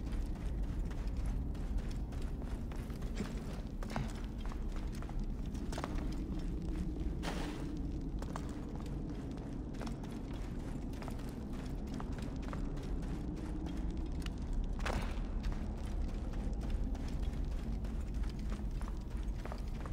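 Footsteps crunch on sand and stone.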